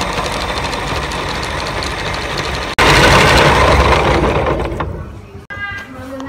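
A meat grinder whirs loudly as it runs.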